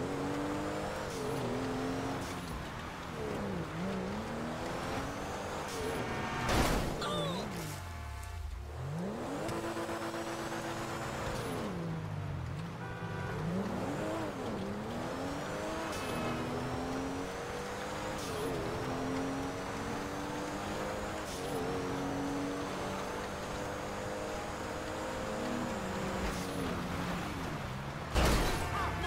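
A sports car engine revs hard, rising and dropping in pitch as it shifts gears.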